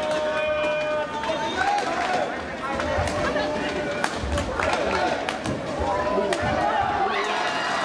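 Rackets smack a shuttlecock back and forth during a rally.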